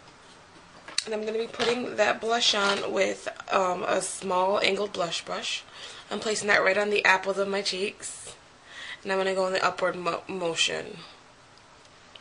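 A young woman talks close by, calmly, as if to a microphone.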